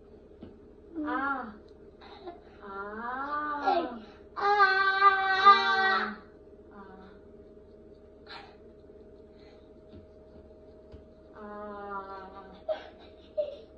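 A young woman sings out loud, drawn-out notes with her mouth wide open.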